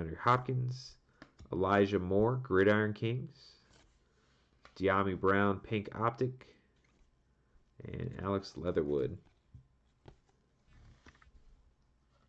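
Trading cards rustle and tap softly as they are handled.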